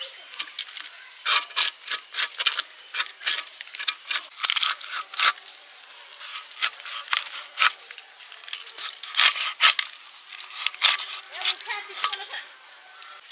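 Fish scales scrape sharply against a blade in quick strokes.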